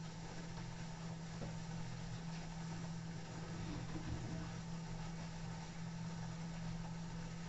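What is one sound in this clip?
A washing machine hums steadily as its drum turns.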